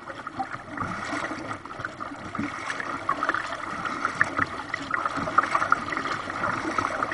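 Water splashes and gurgles against the bow of a kayak as it glides forward.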